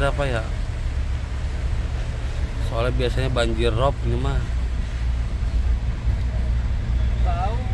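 A heavy truck engine rumbles steadily from inside the cab.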